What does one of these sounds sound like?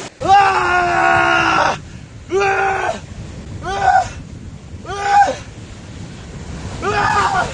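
A young man yells loudly in long drawn-out cries close by.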